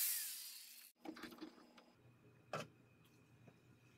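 Metal pliers clink against a metal part.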